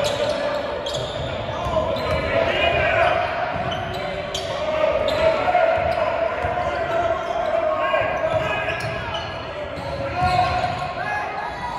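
Spectators murmur and call out in an echoing gym.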